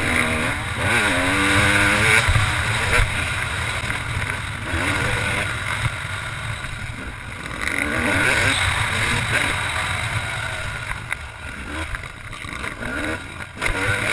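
A motorcycle engine roars and revs up and down close by.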